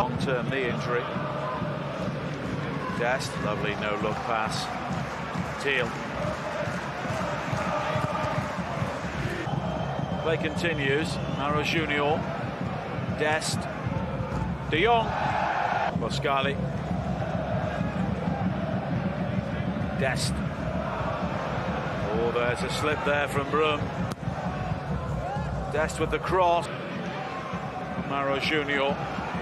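A large crowd of spectators chants and cheers steadily in a stadium.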